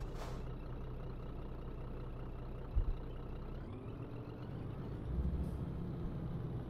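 A truck engine hums steadily at low revs.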